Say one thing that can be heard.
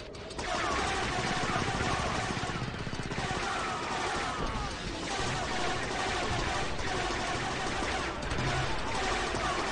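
An energy shield hums and crackles loudly.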